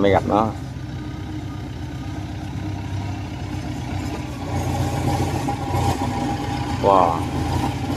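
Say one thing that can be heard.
A tracked machine's diesel engine rumbles steadily nearby.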